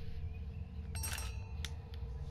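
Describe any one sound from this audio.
A short electronic interface chime sounds.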